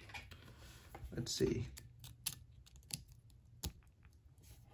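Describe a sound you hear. Small plastic parts click and tap close by.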